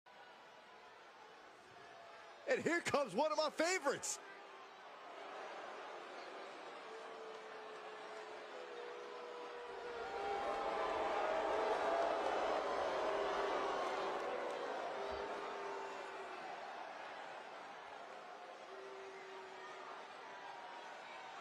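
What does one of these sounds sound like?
A large crowd cheers and roars in an echoing arena, swelling louder and then easing off.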